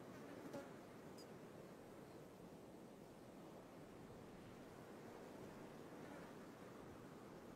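Wind blows steadily outdoors through the bushes.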